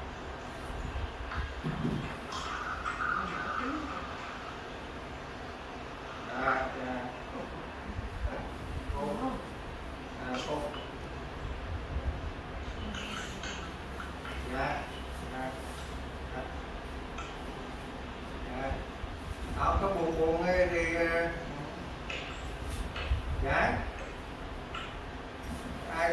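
An elderly man talks on a phone nearby, calmly and in short bursts.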